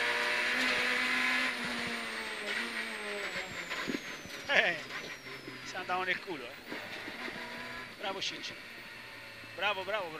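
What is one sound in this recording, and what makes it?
A rally car engine roars loudly, revving high and then dropping as the car slows.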